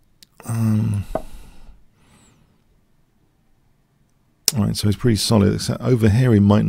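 An older man speaks with animation close to a microphone.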